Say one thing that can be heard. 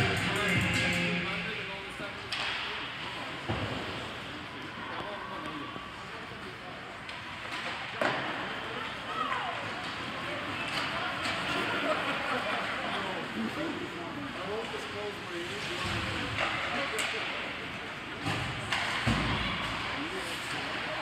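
Skates scrape and glide on ice in a large echoing rink.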